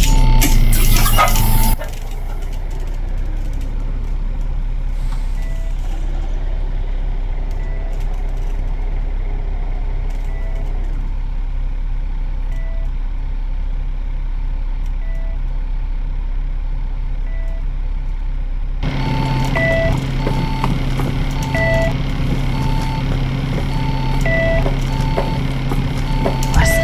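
A bus engine idles with a low steady hum.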